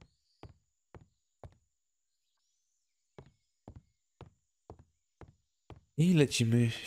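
Footsteps tap on a wooden floor at an even pace.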